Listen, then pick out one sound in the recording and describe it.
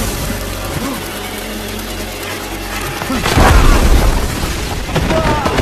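Debris crashes and clatters down.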